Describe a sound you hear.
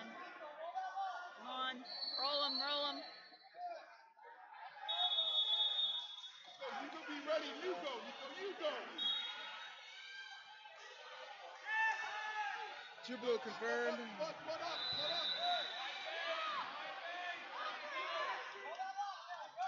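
Spectators and coaches shout and call out in an echoing gym.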